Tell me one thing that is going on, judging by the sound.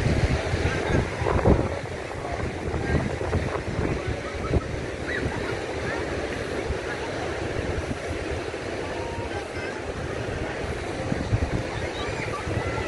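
Wind blows outdoors, rumbling steadily.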